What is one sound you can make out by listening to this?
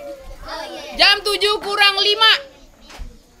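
A girl shouts loudly with excitement.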